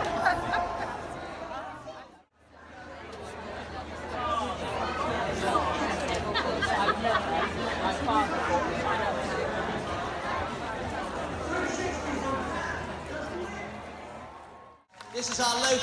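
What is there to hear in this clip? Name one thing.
A crowd of adults chatters in a large tent.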